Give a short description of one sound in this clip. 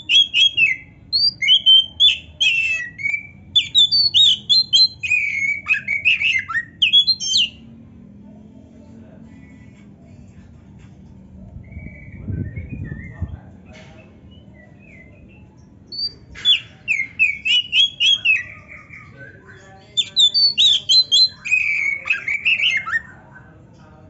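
A songbird sings loud, varied chirping phrases in bursts.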